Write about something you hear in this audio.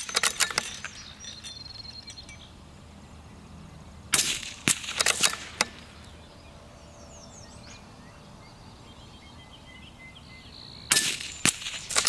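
A .22 rimfire rifle fires sharp single shots.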